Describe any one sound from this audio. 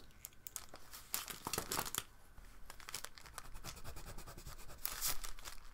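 A pencil scratches and scrapes across paper.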